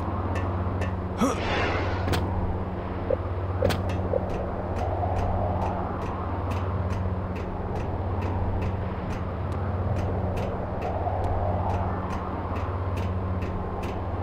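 Footsteps clank steadily on a metal walkway.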